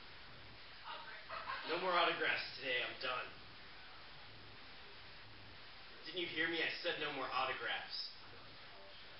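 A man speaks calmly in a quiet room.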